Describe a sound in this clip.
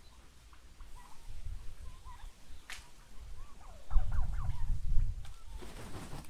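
Chickens cluck softly.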